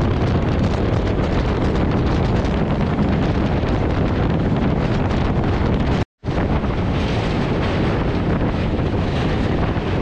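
A train rumbles and clatters steadily along the rails.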